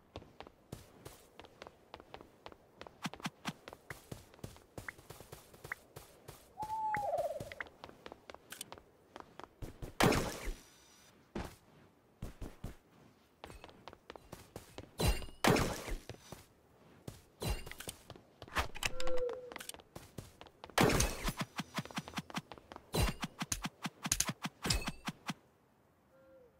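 Footsteps tap quickly on blocks.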